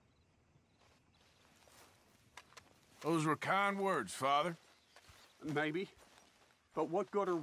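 Footsteps walk softly over grass.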